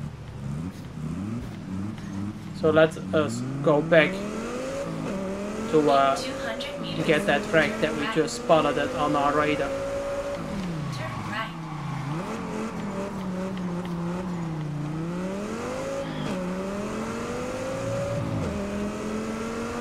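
A car engine revs hard, rising and falling in pitch as gears change.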